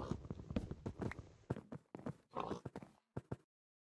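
Pigs grunt and oink nearby.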